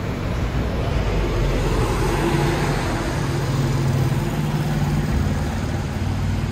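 A bus drives past close by with a low engine rumble.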